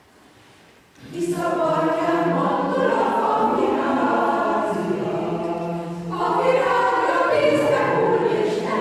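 A mixed choir sings together in a reverberant hall.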